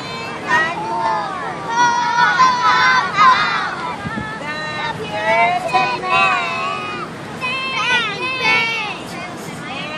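A group of young children sing together outdoors.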